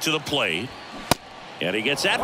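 A ball smacks sharply once into a catcher's mitt.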